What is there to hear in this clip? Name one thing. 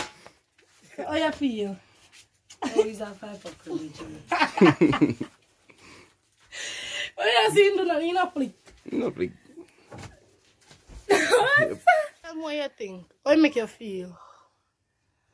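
A young woman cries out and speaks in distress close by.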